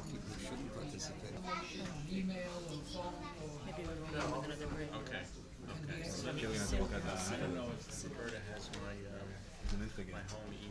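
A middle-aged woman speaks calmly into a microphone, heard through a loudspeaker in a large hall.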